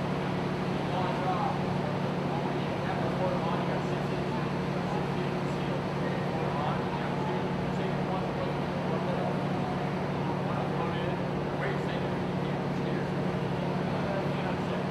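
Water churns and splashes around the amphibious vehicles.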